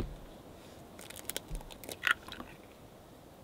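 An eggshell crackles as it is pulled apart.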